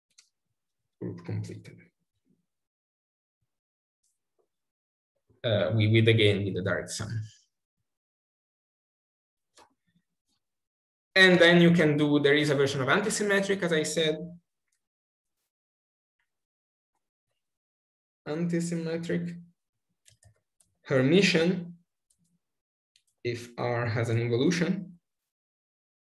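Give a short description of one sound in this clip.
A man speaks calmly in short phrases over an online call, with pauses between them.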